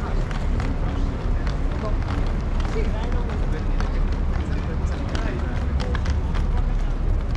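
Suitcase wheels rattle over paving stones.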